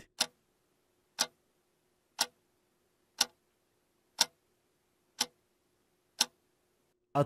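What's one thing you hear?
A clock ticks loudly once every second.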